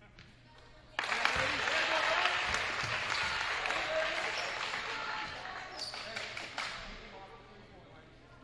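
A crowd in a large echoing gym cheers loudly, then slowly dies down.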